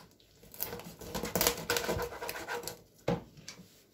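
A knife scrapes scales off a fish.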